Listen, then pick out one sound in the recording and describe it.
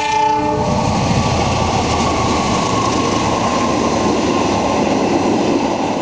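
A train rumbles past close by, its wheels clattering on the rails.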